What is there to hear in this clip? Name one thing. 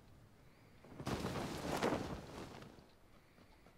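Wind rushes past a parachuting figure.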